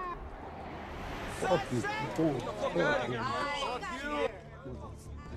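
A crowd of people shouts and jeers outdoors.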